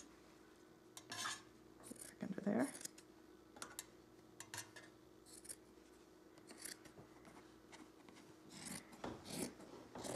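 Scissors snip through thick fabric in short, crisp cuts.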